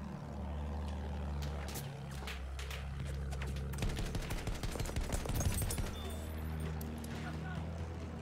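A biplane engine drones steadily.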